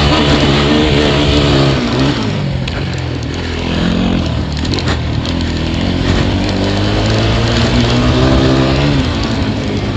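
A quad bike engine drones close by, revving up and down as it drives.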